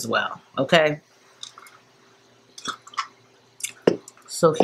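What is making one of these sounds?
A woman sips through a straw.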